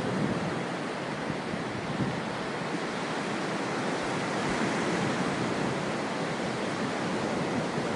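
Waves wash gently over rocks along a shore.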